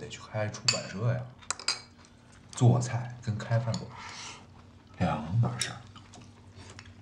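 Chopsticks click against bowls.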